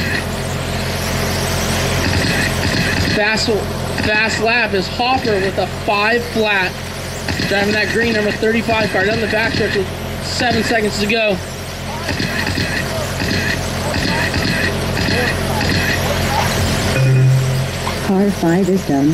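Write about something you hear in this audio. Small electric racing cars whine loudly as they speed around a track.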